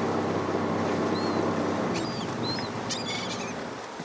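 Seabirds call overhead.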